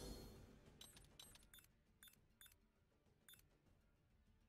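Menu selections click softly.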